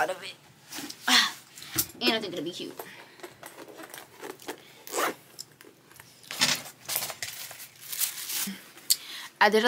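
Clothes rustle and shuffle nearby.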